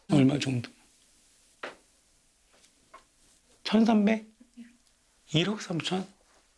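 A middle-aged man asks short questions calmly at close range.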